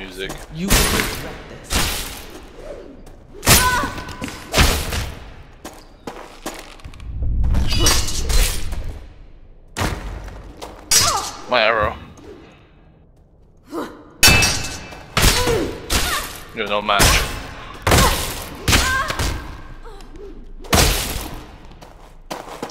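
Blades clash and strike in sharp, ringing blows.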